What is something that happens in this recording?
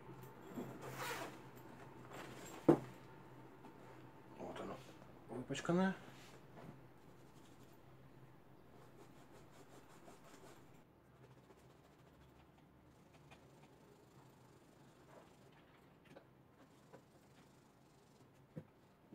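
Fabric rustles as a backpack is handled and folded.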